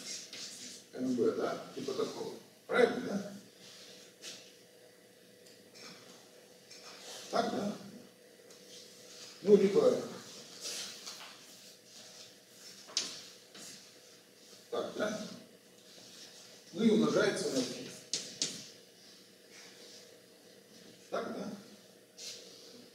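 An elderly man lectures in bursts of calm speech in an echoing room.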